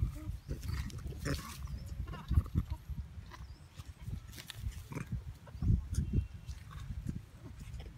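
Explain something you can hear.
Monkeys scuffle and rustle in the grass.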